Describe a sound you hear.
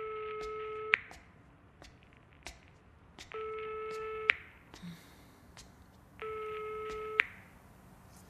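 A phone ringing tone sounds through a handset in short repeated bursts.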